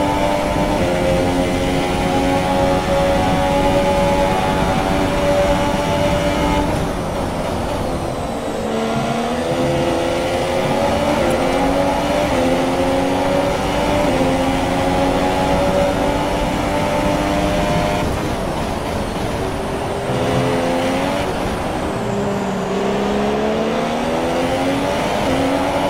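A Formula One car's engine climbs through the gears as it accelerates.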